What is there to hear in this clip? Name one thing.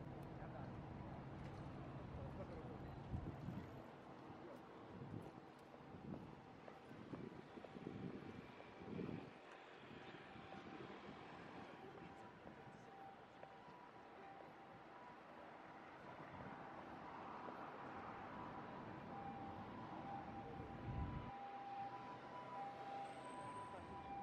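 Traffic hums steadily on a busy city street outdoors.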